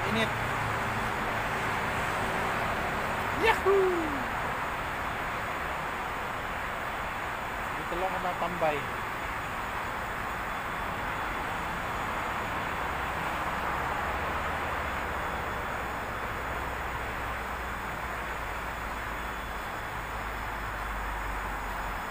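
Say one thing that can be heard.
Traffic rushes steadily along a busy road outdoors.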